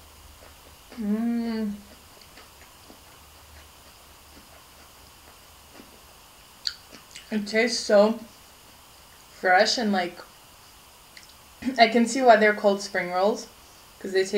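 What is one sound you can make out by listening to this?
A young woman speaks close to the microphone in short animated bursts.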